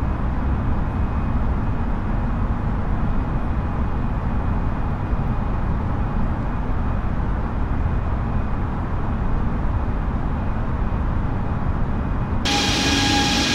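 A jet airliner's engines rumble low and steady, heard from inside the cockpit.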